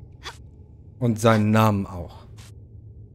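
A man speaks briefly and with animation into a headset microphone.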